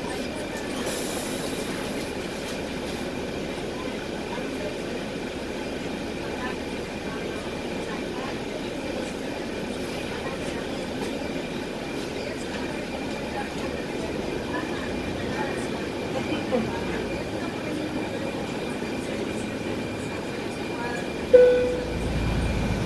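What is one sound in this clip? A bus engine hums steadily from inside the bus as it moves slowly through traffic.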